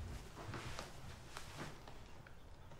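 A laptop lid closes with a soft thud.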